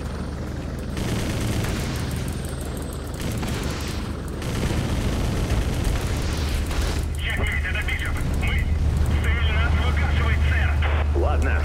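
Explosions boom and rumble in bursts.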